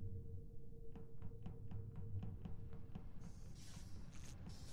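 Quick footsteps tap along a hard floor.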